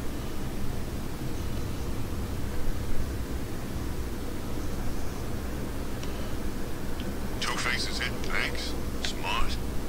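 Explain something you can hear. A flying drone hums steadily overhead.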